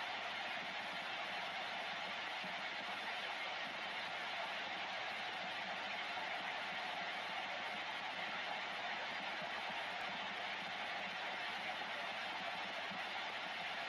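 Steady radio static hisses from a receiver's loudspeaker.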